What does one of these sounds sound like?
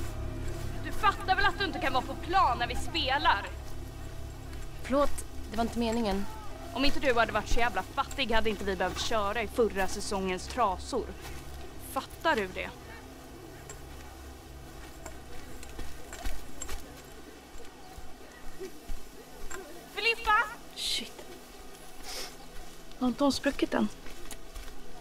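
A teenage girl speaks sharply and close by, outdoors.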